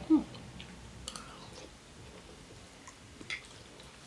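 A young woman chews and slurps food close by.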